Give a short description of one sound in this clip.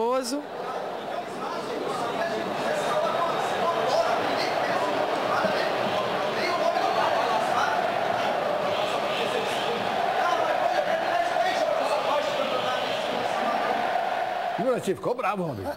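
A crowd chants and roars in a large stadium.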